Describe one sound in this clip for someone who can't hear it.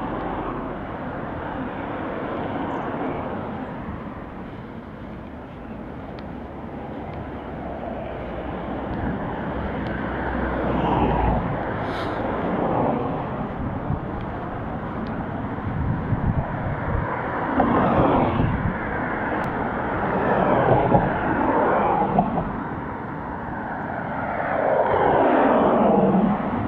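Cars pass by on a nearby road.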